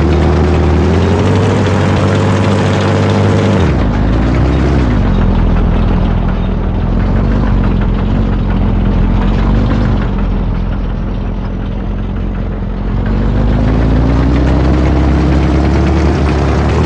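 Tank tracks clatter over the road.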